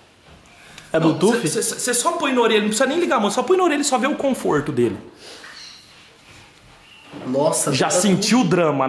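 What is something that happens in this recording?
A young man talks calmly and close.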